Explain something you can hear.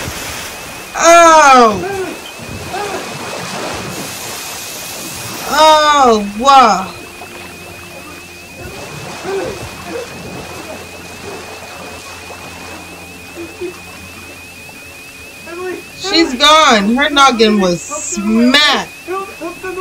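A young man yells loudly in sudden bursts, close to a microphone.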